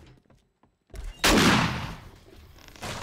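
A shotgun fires once with a loud blast.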